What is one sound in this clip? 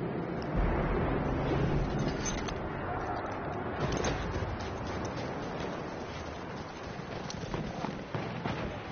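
Gunfire and explosions crackle and boom across a battlefield.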